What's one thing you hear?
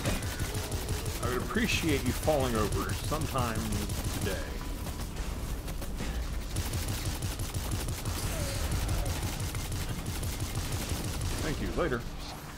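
Guns fire in rapid bursts with heavy thuds.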